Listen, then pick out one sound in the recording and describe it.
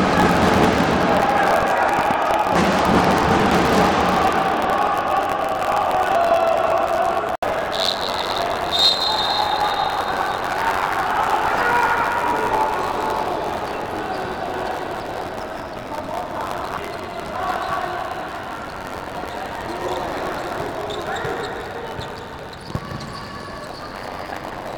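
A ball thuds as players kick it on an indoor court.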